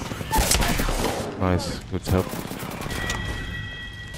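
A grenade explodes with a crackling blast.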